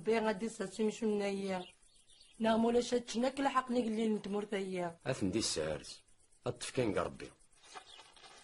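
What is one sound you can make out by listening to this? An elderly woman speaks with emotion, close by.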